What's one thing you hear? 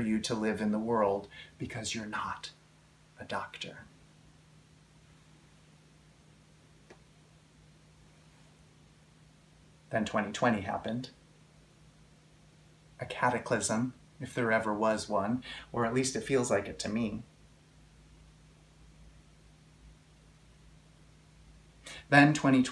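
A man speaks calmly and warmly, close to a microphone, with pauses between phrases.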